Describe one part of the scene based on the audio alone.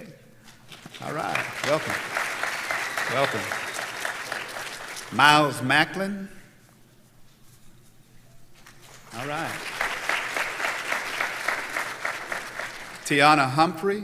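A large crowd calls out and cheers together.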